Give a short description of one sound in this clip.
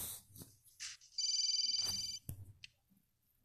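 A phone ringtone chimes briefly.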